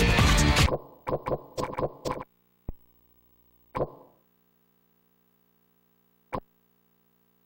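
Short electronic menu blips sound one after another.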